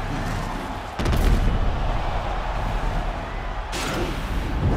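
A punch lands with a heavy thud.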